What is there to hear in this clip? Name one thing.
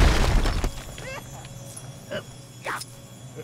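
Short chirping game effects ring out.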